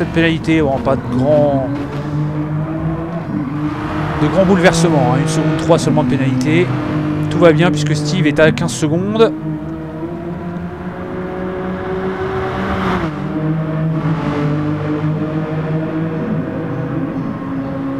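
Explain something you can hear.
A race car engine roars steadily and revs up and down with gear changes.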